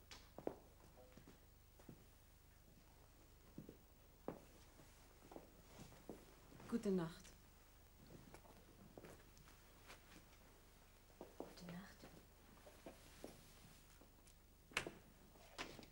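A heavy coat rustles as it is handled.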